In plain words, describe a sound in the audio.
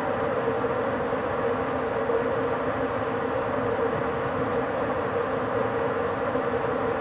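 A train rolls steadily along the rails with a low, humming rumble.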